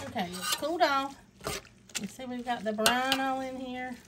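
A metal spoon stirs a wet, chunky mixture with soft squelching.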